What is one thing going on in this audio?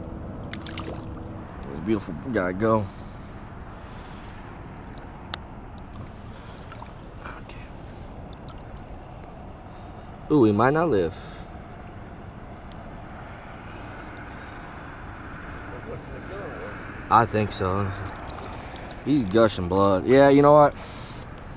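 Shallow water swishes and splashes softly around wading feet.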